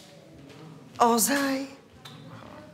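A woman exclaims loudly in surprise nearby.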